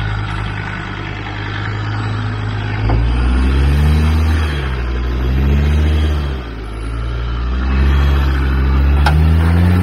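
Tyres grind and crunch over rock and gravel.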